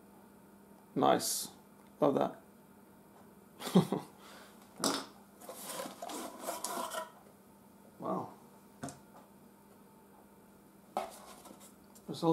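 Cardboard and paper rustle as a box is handled.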